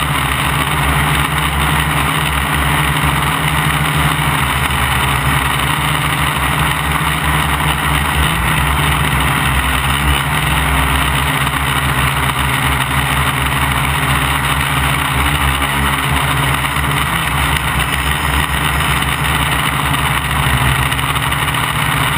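Drone propellers whir with a loud, steady buzz up close.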